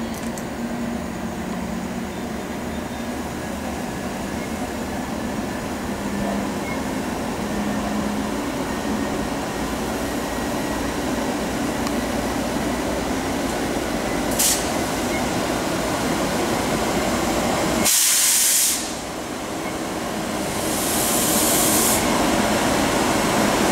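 An electric locomotive rumbles slowly past, its engine humming steadily.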